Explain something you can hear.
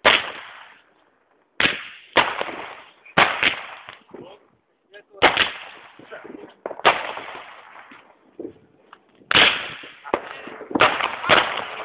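Fireworks crackle after bursting.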